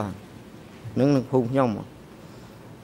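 An elderly man speaks briefly through a microphone.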